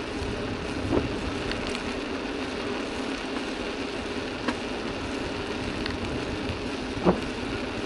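A bicycle rattles over small bumps.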